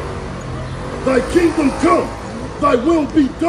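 A man preaches loudly through a microphone outdoors.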